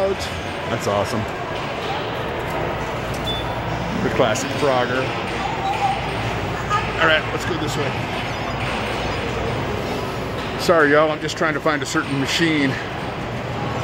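Men and women talk nearby in a large echoing hall.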